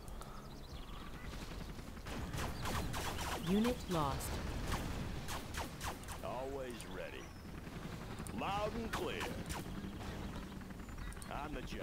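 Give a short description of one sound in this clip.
Helicopter rotors thump steadily.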